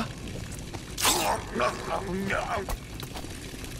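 A knife strikes in a brief, sharp scuffle.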